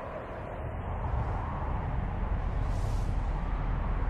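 Guns fire rapidly into the sky.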